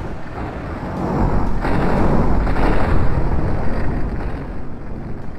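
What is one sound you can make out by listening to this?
Magic blasts roar and crackle.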